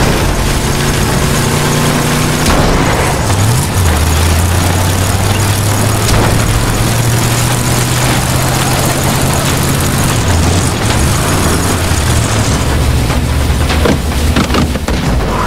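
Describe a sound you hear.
A car engine roars and changes pitch as it drives.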